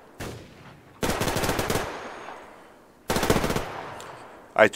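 A machine gun fires loud short bursts nearby.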